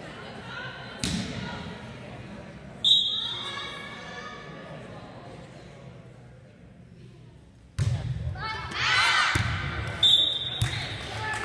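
A volleyball is struck with sharp thumps in an echoing hall.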